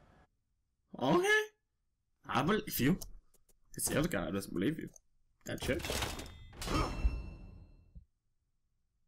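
A young man talks casually through a headset microphone.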